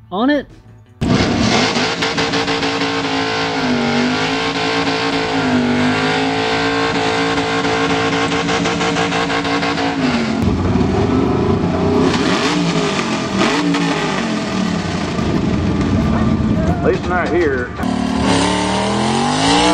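A car engine roars and revs loudly.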